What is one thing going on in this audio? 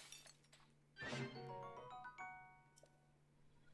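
A bright game jingle plays with a cluster of ringing notes.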